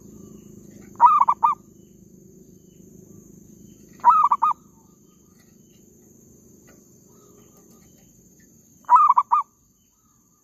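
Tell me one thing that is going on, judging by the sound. A dove coos in short bursts close by.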